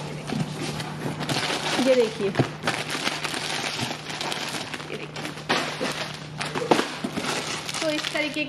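Plastic wrapping crinkles and rustles as it is handled.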